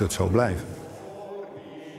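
An elderly man speaks calmly close by.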